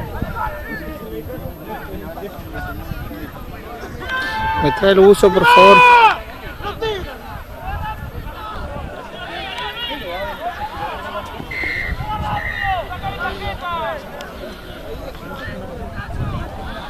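Men shout loudly outdoors.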